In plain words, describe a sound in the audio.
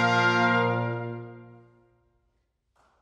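A brass ensemble holds a loud final chord that dies away into an echoing hall.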